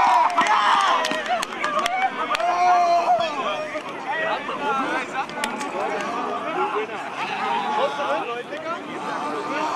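Young men chatter and call out excitedly nearby.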